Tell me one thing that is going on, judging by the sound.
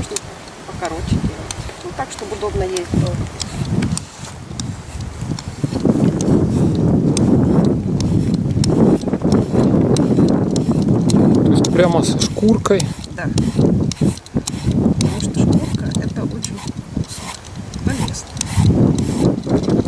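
A peeler scrapes the skin off a courgette.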